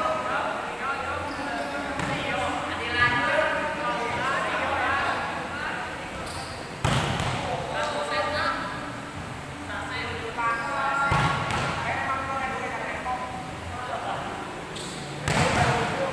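Men talk and call out nearby.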